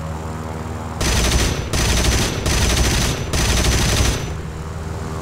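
A fighter plane's machine guns fire in bursts.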